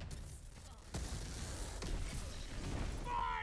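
An electric blast crackles and booms.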